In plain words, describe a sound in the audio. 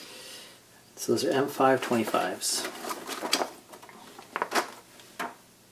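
Paper rustles as a sheet is handled.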